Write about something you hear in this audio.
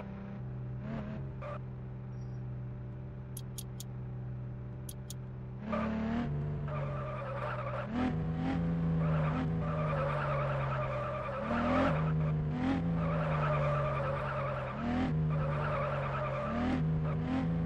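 A sports car engine hums at idle, then revs up and down repeatedly as the car drives.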